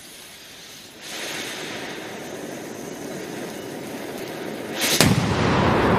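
A firecracker fuse hisses and sprays sparks.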